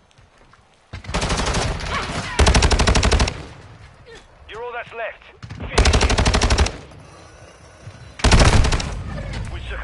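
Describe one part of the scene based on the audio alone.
Rapid gunfire rattles in short, loud bursts.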